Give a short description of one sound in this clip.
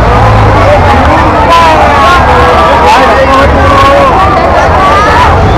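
A large crowd chatters and shouts loudly all around outdoors.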